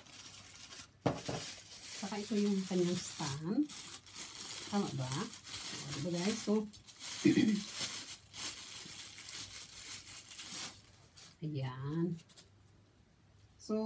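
Plastic wrapping rustles and crinkles.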